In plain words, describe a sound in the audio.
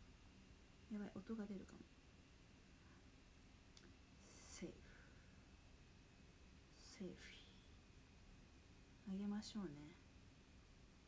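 A young woman speaks softly in short phrases, close by.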